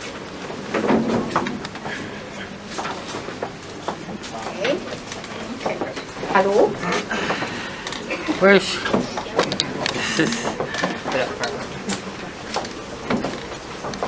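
A crowd of adults chatters in a room nearby.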